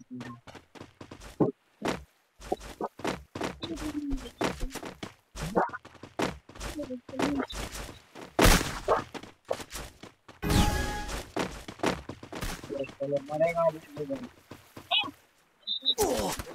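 Footsteps run quickly over a hard surface.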